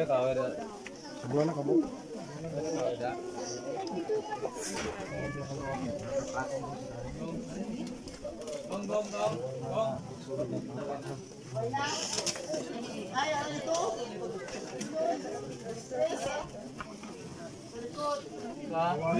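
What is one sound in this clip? A crowd of men and women talks and murmurs close by, outdoors.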